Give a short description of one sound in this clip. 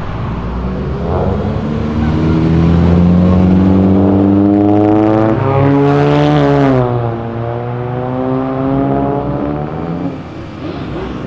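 A car engine revs loudly and rises in pitch, then drops.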